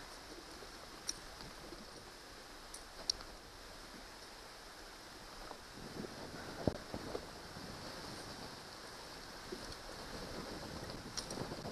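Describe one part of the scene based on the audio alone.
Water laps against a kayak's hull.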